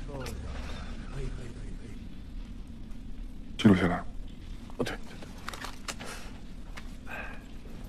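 A young man speaks quietly up close.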